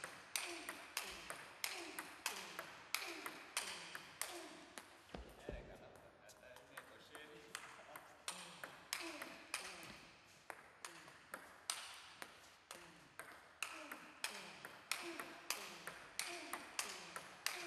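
A ping-pong ball clicks back and forth quickly on paddles and a table, echoing in a large hall.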